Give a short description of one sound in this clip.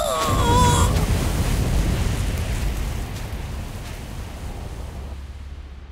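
A deep explosion rumbles and slowly fades.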